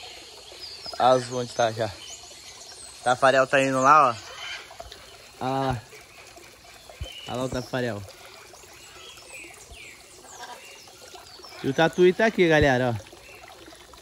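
A parrot squawks and chatters close by.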